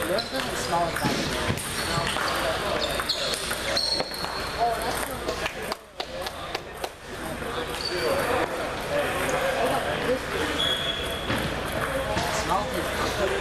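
Ping pong balls click on tables and paddles in a large echoing hall.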